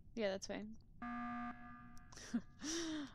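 An alarm blares sharply.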